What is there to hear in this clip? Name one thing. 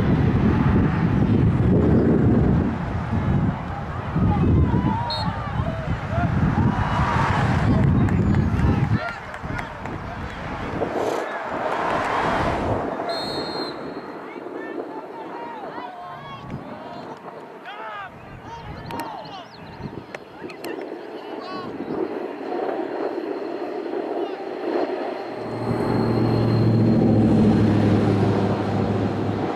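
Young players shout to each other across a field.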